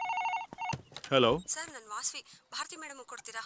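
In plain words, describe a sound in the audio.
A man speaks into a telephone.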